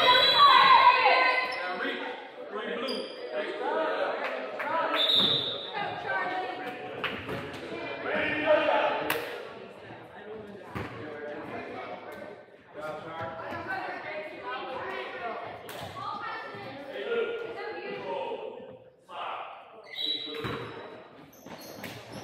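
Children shout and chatter in a large echoing hall.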